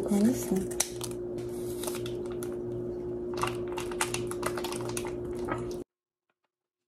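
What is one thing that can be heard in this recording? Scissors snip through a plastic packet.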